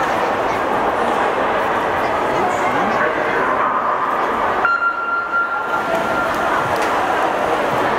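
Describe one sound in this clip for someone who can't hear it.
A crowd murmurs and chatters in a large echoing hall.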